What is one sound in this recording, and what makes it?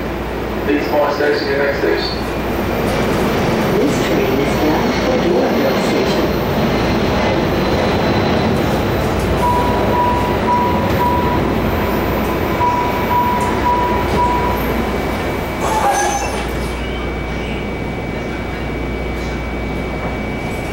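A train rumbles and rattles steadily along the track.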